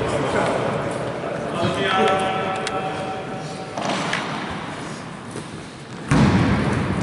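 Sneakers squeak on a wooden floor in a large echoing hall.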